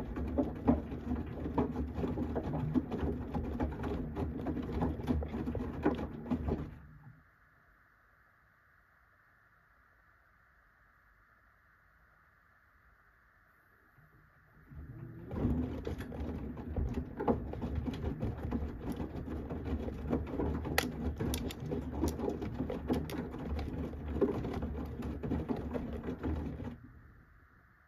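A washing machine drum tumbles wet laundry with sloshing water.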